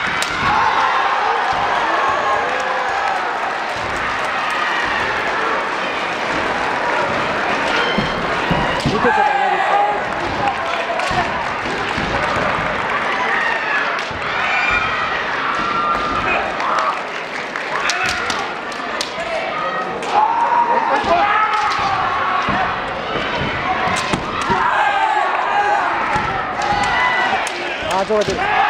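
A crowd of voices murmurs and shouts throughout a large echoing hall.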